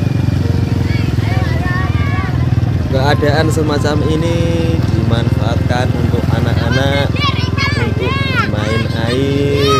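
Children shout and call out excitedly nearby.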